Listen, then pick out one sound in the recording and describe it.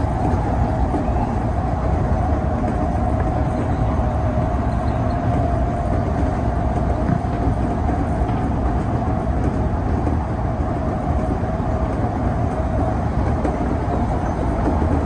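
A train rumbles steadily along the tracks with a droning motor hum.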